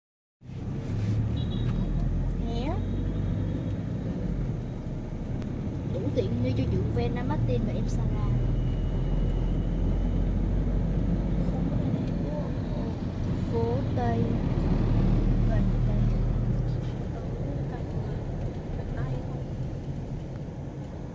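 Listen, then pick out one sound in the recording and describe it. A vehicle engine hums low and steady from inside a moving car.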